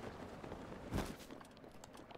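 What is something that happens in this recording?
A character lands with a thump.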